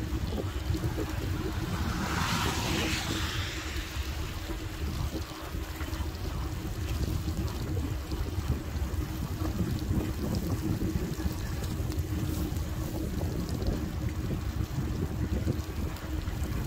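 Wind blows hard outdoors, rumbling against the microphone.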